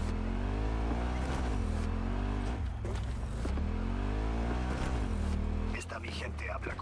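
A motorbike engine revs up and down.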